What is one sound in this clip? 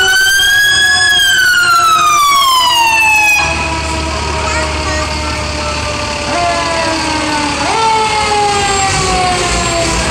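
A siren wails nearby, its pitch sliding up and down.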